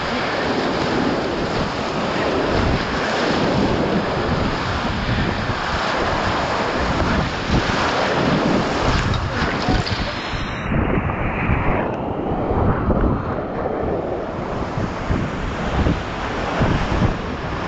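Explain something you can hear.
Whitewater rapids roar loudly and close by.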